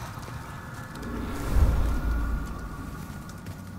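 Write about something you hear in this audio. A deep rumbling blast booms.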